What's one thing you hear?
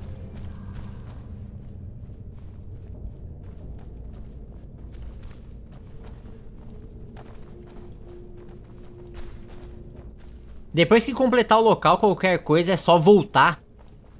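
Heavy clawed footsteps pad quickly over stone.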